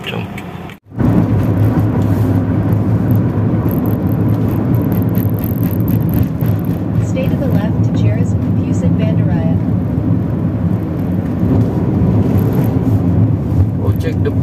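A car drives on a paved road, heard from inside the car.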